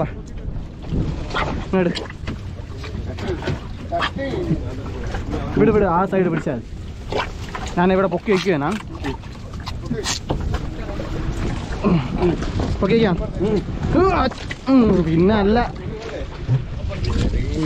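A fishing net rustles as it is pulled.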